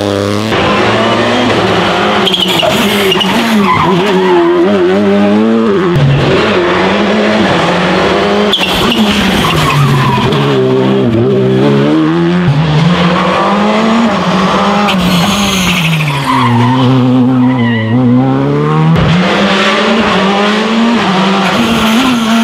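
Rally car engines roar loudly, revving up and down as cars pass one after another.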